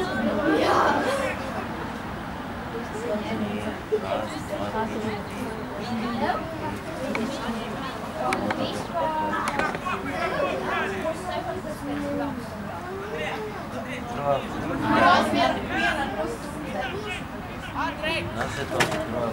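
Young players shout to each other across an open field in the distance.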